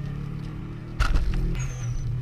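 A sharp thud jolts the car.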